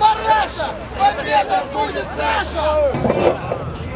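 A crowd chants and shouts outdoors.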